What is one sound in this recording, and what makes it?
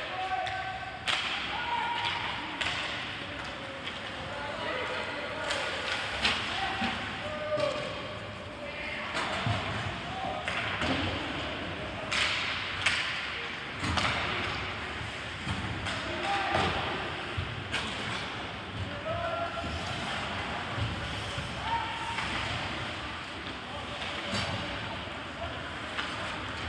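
Players shout to each other across the rink.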